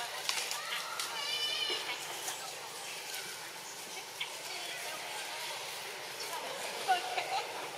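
A monkey chews on corn with soft crunching.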